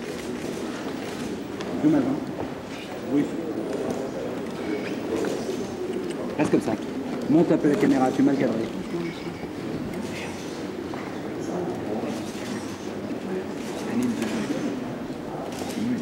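A crowd murmurs in a large room.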